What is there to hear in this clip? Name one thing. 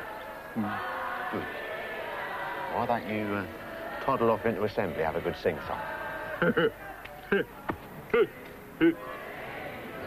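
A middle-aged man answers, talking and laughing close by.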